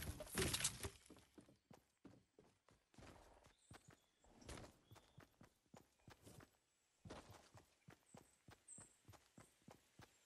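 Footsteps patter quickly across wood and grass.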